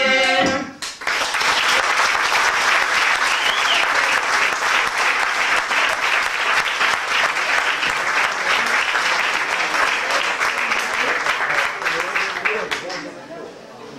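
An audience claps and applauds loudly.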